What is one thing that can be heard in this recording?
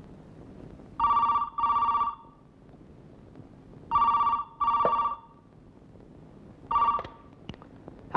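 A telephone rings in short double bursts.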